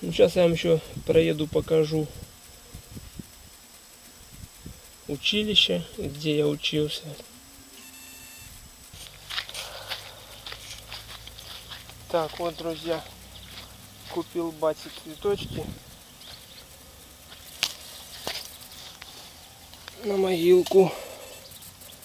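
A man speaks calmly close to the microphone, in short bursts.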